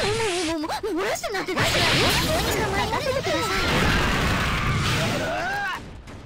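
Magical spell effects whoosh and crackle in a fight.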